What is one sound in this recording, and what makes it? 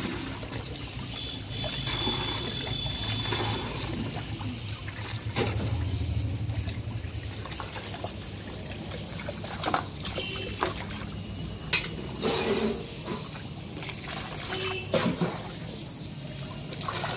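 Water splashes as it is poured over hair into a basin.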